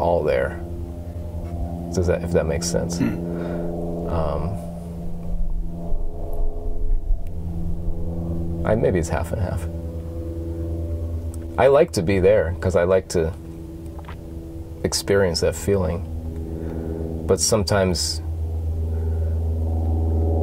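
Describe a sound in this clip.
An electric guitar strums chords that ring out through an amplifier.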